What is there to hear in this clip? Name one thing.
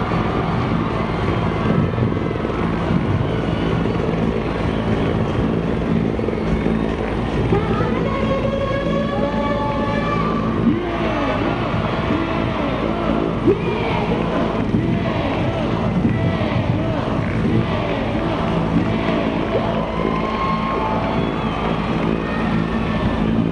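A helicopter engine whines and its rotor thumps steadily close by.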